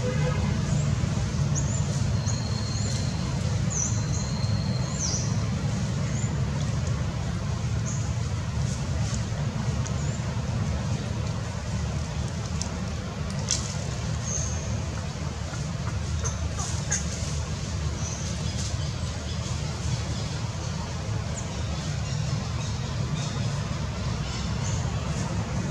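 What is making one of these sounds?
A baby monkey suckles softly.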